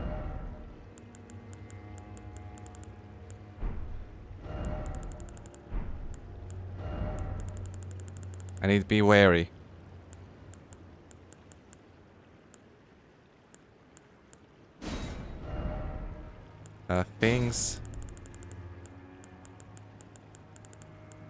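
Soft game menu clicks tick rapidly as selections change.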